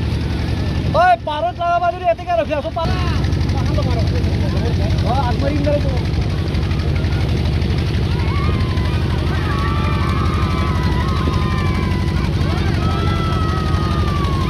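A boat engine chugs steadily close by.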